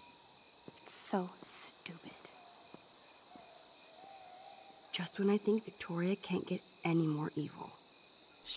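A young woman speaks with frustration.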